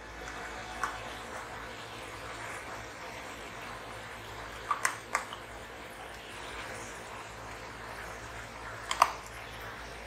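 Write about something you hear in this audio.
A metal spoon clinks against a glass jar.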